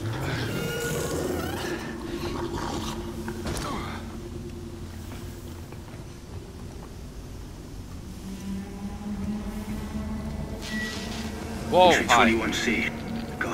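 A man talks casually into a microphone, close by.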